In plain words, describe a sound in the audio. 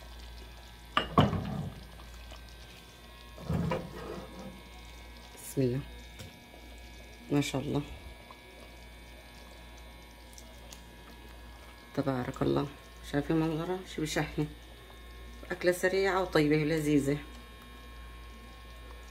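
A ladle clinks against a metal pot.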